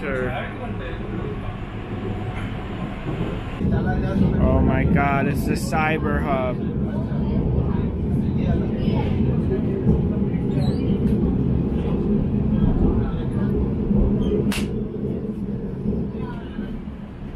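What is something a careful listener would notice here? A train rumbles steadily along an elevated track.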